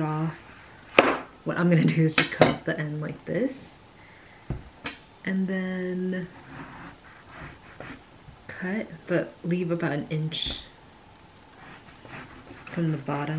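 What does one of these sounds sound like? A knife cuts through a lemon onto a cutting board.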